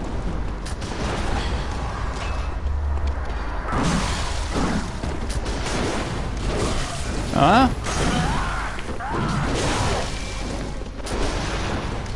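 Gunshots crack during a fight.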